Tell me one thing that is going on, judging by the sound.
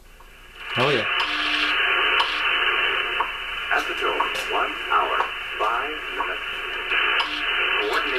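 Static hisses from a software-defined shortwave radio receiver tuned to a single-sideband signal.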